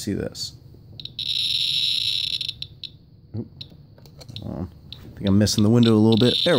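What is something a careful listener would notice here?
A radiation meter clicks now and then.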